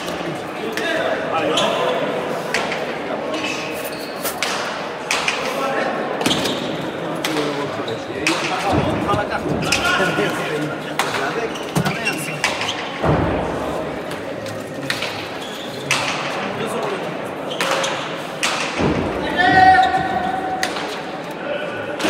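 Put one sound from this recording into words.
A hard ball smacks against a wall and players' hands again and again, echoing through a large hall.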